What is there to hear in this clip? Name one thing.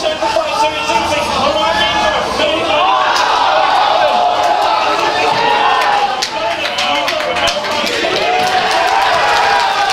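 Several young men talk and chatter nearby.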